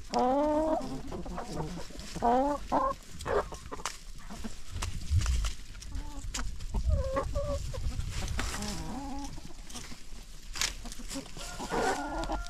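Hens scratch and shuffle in dry leaves.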